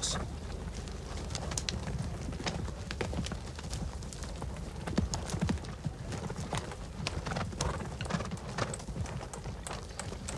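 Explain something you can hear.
Horses' hooves thud and clatter at a gallop on the ground.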